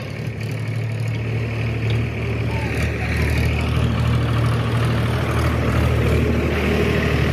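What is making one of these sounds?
A diesel engine of a backhoe loader rumbles steadily up close.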